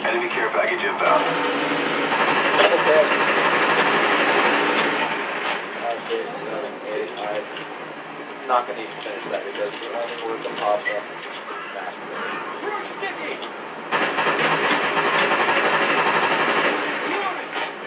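An assault rifle fires in rapid bursts.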